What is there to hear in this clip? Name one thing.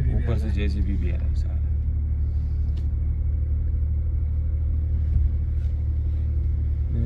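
A vehicle engine hums with a low, steady rumble from inside the cab.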